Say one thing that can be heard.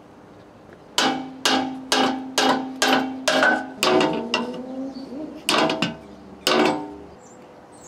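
A hammer strikes metal in quick, ringing blows.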